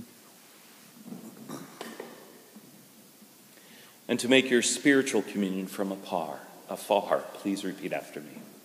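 A man speaks slowly through a microphone in a large echoing hall.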